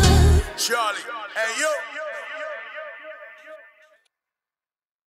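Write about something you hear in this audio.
A man sings into a microphone, his voice trailing off in echo.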